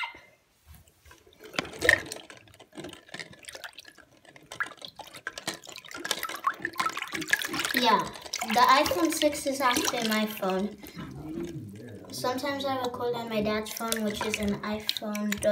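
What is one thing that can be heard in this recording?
Water splashes and sloshes as a toy is pushed through it.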